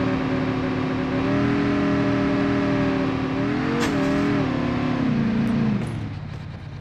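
A quad bike engine drones steadily, its pitch wavering, then winds down.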